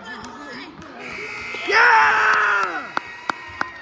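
A crowd cheers and shouts loudly in an echoing gym.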